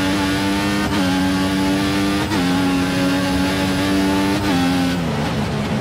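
A racing car engine screams at high revs, dropping briefly with each gear change.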